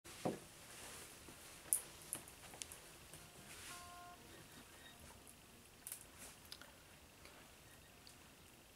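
An acoustic guitar is picked softly.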